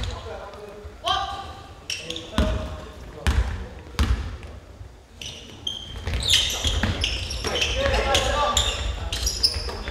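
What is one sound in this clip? A crowd of young people shouts and cheers in an echoing hall.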